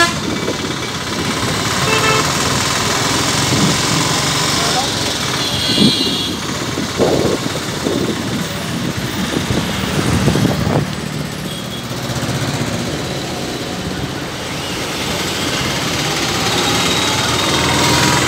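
Busy city traffic rumbles and hums steadily outdoors.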